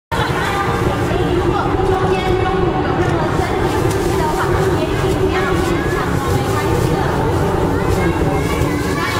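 A crowd chatters nearby.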